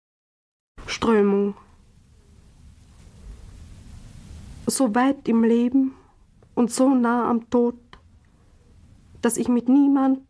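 A woman speaks slowly and thoughtfully, close by, in short phrases with pauses.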